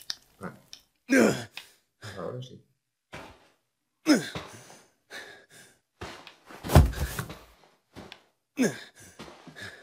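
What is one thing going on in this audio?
A young woman gasps and groans weakly.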